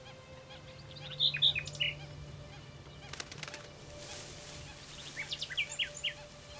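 A small bird sings clear, chirping notes close by.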